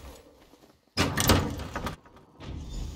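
A heavy wooden door swings open with a loud creak and thud.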